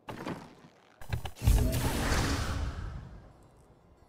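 A magical portal gives a rushing whoosh.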